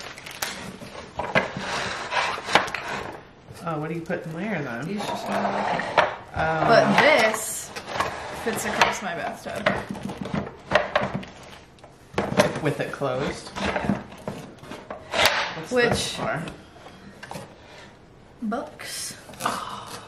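Hard plastic parts knock and clatter as they are handled.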